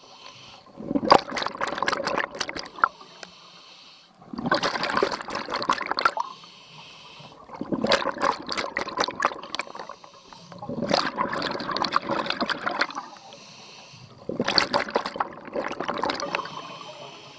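Bubbles rush and gurgle from a diver's breathing regulator underwater in regular bursts.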